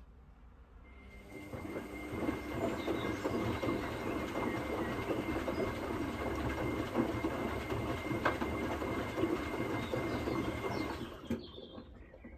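Water sloshes and churns loudly inside a turning washing machine drum.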